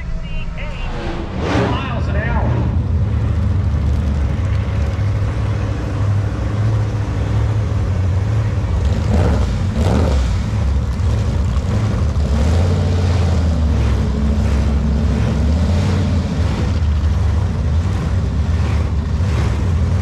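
Race car engines rumble and roar loudly.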